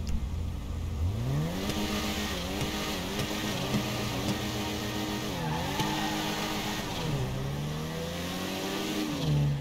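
A car engine revs up and roars, rising and falling in pitch with gear changes.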